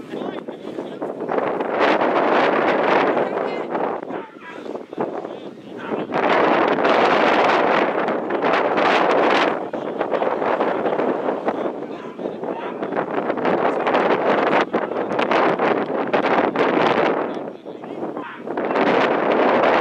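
Wind buffets the microphone in gusts outdoors.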